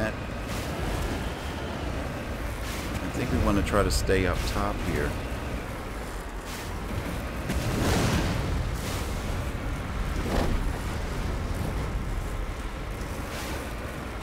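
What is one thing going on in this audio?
Heavy tyres crunch and bump over rocky ground.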